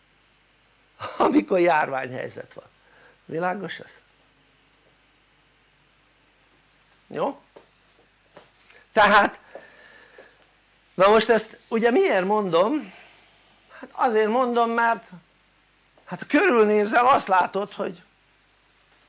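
An elderly man speaks with animation through a microphone, in short phrases with pauses.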